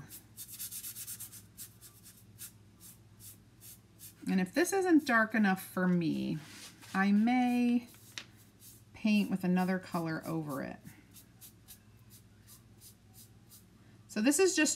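A brush dabs paint onto paper with quick, soft taps.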